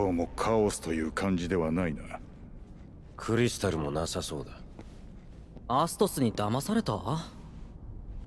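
A man speaks calmly and clearly, close by.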